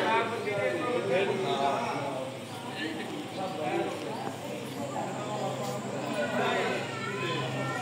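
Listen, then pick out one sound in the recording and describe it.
Men and women chatter in the background.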